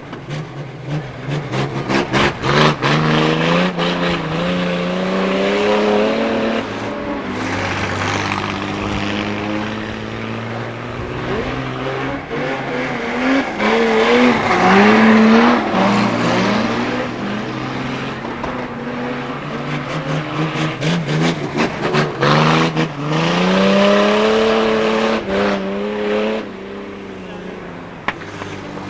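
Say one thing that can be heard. Car engines roar and rev.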